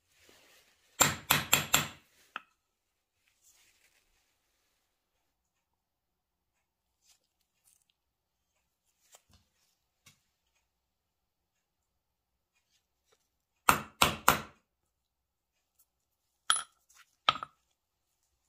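A hammer strikes a metal punch in quick sharp blows.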